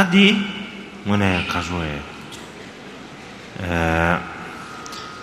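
A man speaks calmly and slowly into a microphone, with long pauses.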